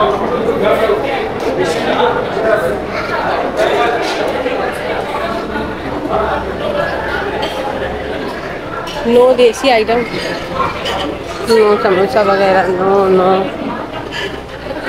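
A crowd of people chatters in an echoing indoor hall.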